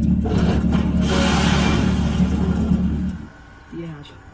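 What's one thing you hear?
A heavy truck engine rumbles loudly nearby.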